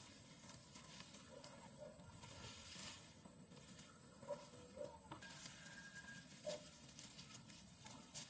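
Leafy branches rustle as they are pushed aside.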